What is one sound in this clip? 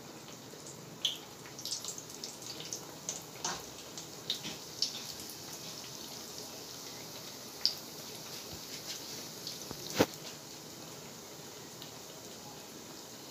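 Hot oil sizzles and crackles as dough fries in it.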